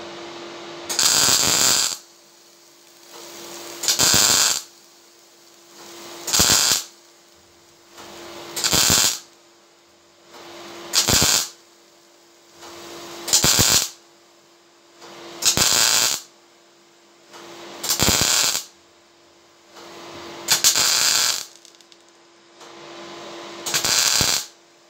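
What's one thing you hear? An arc welder crackles and sizzles in short, loud, repeated bursts.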